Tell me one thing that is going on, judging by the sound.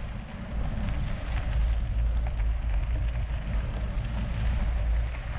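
Wind rumbles loudly across a close microphone.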